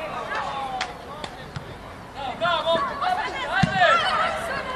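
A football is kicked with dull thuds outdoors.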